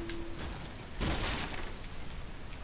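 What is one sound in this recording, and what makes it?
A pickaxe swings and strikes with a sharp whoosh.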